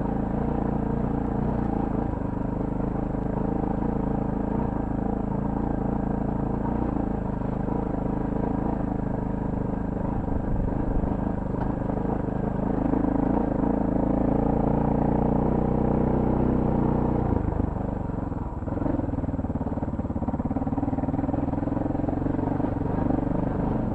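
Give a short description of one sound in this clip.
A motorcycle engine hums steadily up close, shifting pitch now and then.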